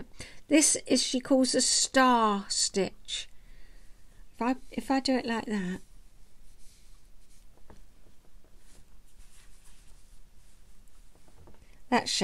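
An older woman talks close to the microphone, calmly and warmly.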